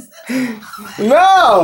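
A man cries out in a high, wavering voice.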